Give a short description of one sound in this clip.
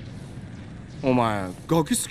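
A man speaks gruffly up close.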